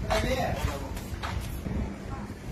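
Footsteps climb wooden stairs.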